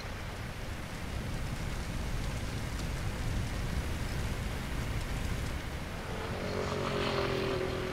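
Water sprays hard from a hose.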